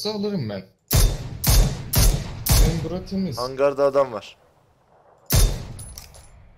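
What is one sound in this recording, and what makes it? Rifle shots crack sharply several times in quick succession.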